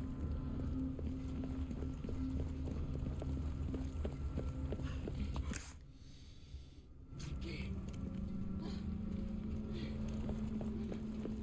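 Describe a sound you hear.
Footsteps thud on stone paving.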